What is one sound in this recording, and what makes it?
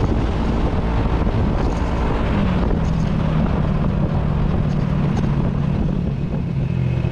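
A motorcycle engine hums steadily, its pitch dropping slightly.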